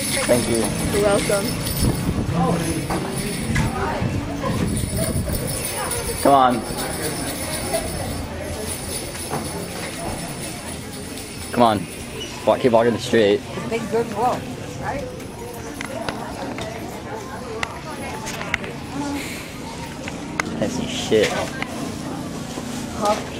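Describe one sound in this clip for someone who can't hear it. Men and women chatter and call out nearby.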